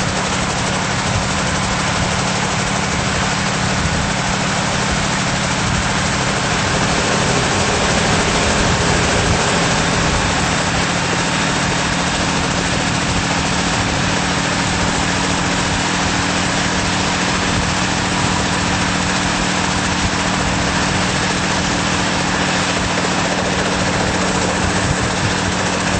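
A helicopter engine roars loudly and steadily close by.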